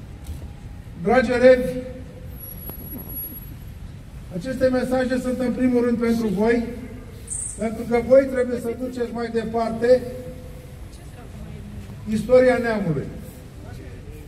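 An older man sings slowly in long held notes through a microphone outdoors.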